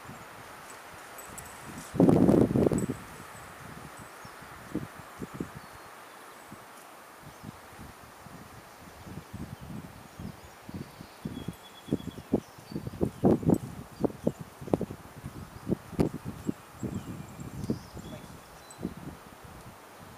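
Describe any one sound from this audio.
A man calls short commands to a dog from a distance, outdoors.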